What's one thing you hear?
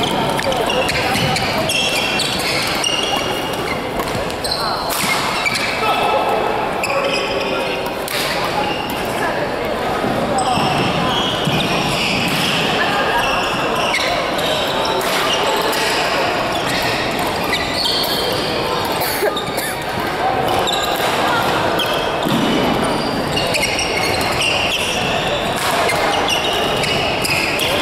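Rackets strike a shuttlecock with sharp pops in an echoing hall.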